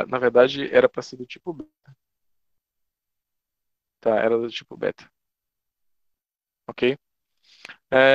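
A young man speaks calmly over an online call, in short bursts with pauses.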